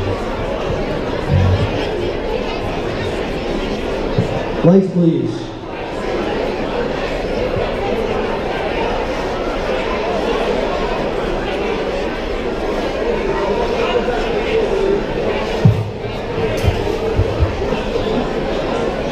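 A band plays music.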